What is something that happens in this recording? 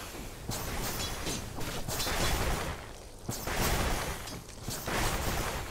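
Game spell effects crackle and blast in quick bursts.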